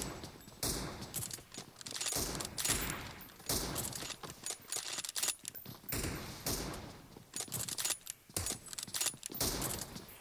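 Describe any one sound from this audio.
Gunshots ring out in rapid bursts, close by.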